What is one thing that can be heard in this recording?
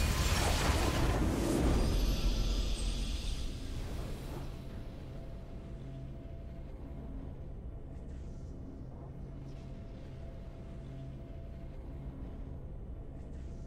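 A victory fanfare plays.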